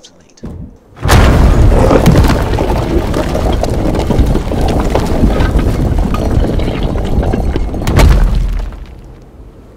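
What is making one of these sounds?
A magical portal roars and rumbles loudly.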